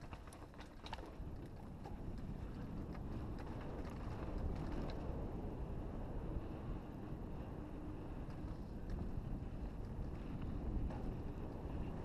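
Wind rushes and buffets steadily outdoors.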